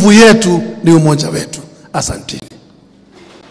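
A man speaks loudly and with animation through a microphone, with echo.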